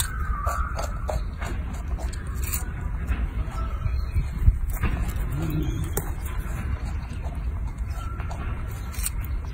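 A monkey crunches and chews on a cucumber up close.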